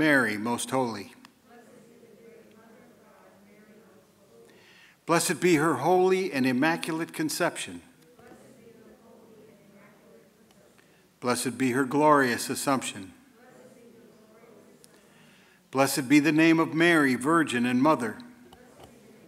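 A man speaks slowly and solemnly through a microphone in a large echoing hall, pausing between phrases.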